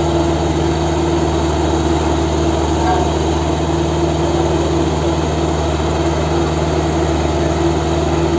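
A drilling rig engine runs loudly and steadily.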